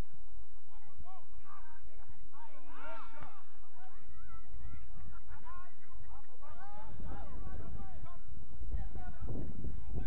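Players shout across a field in the distance.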